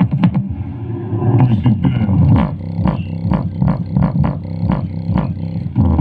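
A small portable speaker plays bass-heavy music with a thumping beat.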